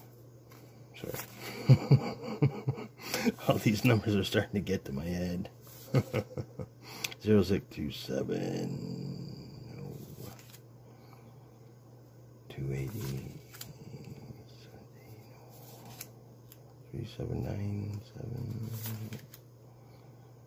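Paper banknotes rustle and flick as they are counted by hand.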